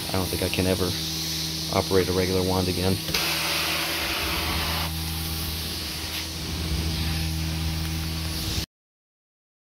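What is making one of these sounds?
A carpet cleaning machine hums and whooshes steadily as its wand sucks across carpet.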